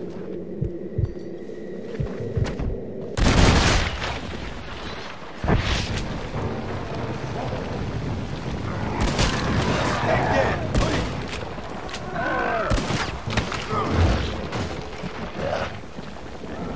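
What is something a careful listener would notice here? Gunshots ring out repeatedly and sharply, with a booming echo.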